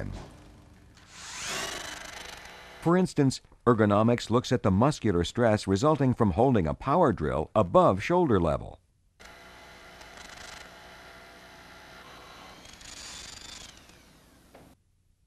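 A power drill whines as it bores into concrete.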